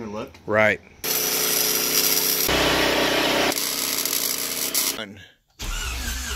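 An arc welder crackles and buzzes.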